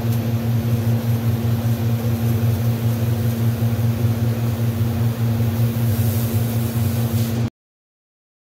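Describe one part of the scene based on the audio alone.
A welding torch crackles and buzzes steadily.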